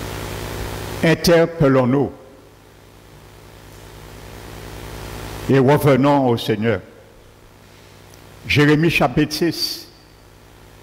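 A man speaks through a microphone in short, measured phrases with pauses between them.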